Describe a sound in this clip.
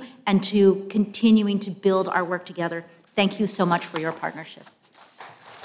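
A woman speaks calmly into a microphone in a large hall.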